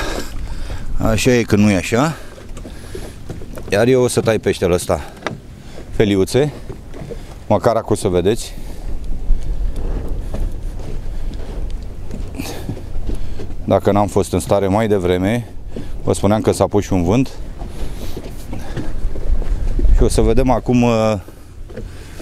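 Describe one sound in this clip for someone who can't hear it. A middle-aged man talks calmly and close by.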